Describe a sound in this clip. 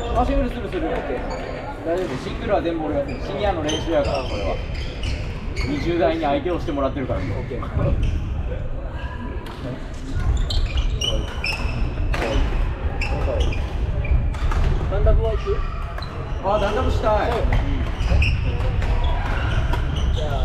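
Young people talk and call out across the hall.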